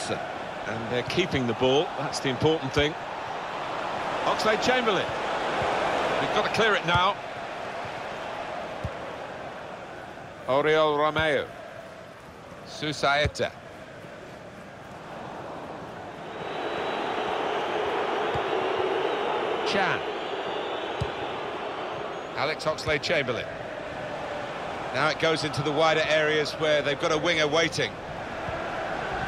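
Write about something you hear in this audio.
A large stadium crowd murmurs and cheers steadily.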